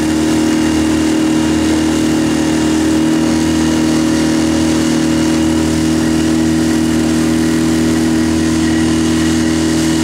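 Water churns and splashes behind a moving boat.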